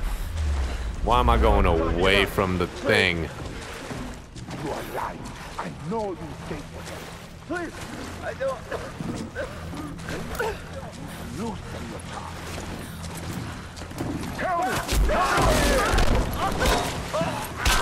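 A young woman demands answers in a harsh, angry voice.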